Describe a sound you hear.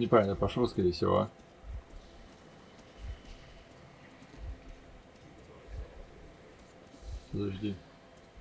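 A young man talks close into a microphone.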